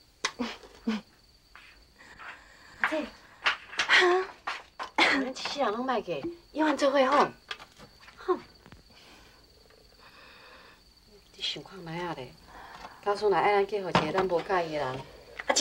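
A young woman speaks softly and earnestly nearby.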